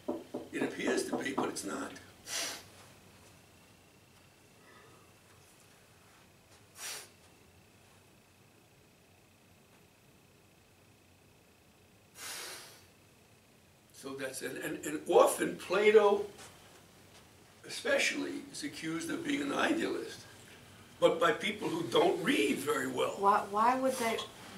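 An elderly man lectures calmly, with pauses.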